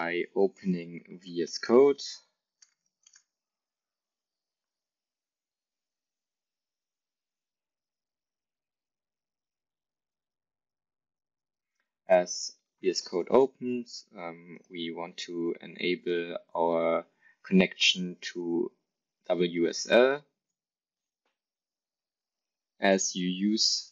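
A man talks calmly and close to a microphone, with pauses.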